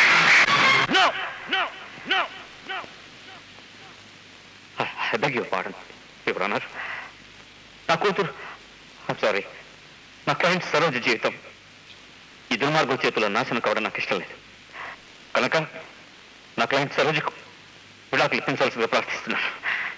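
A man speaks forcefully and with animation.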